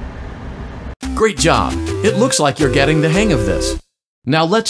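A cheerful musical jingle plays.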